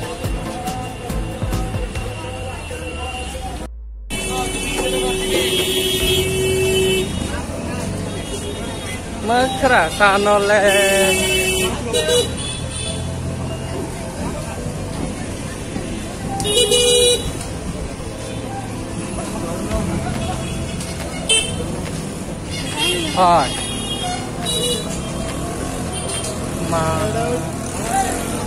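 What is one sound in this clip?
Traffic rumbles steadily along a busy street outdoors.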